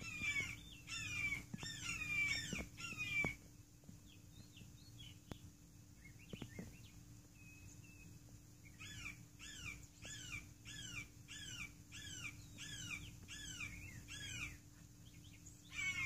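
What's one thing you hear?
A hawk calls with repeated sharp, shrill cries nearby.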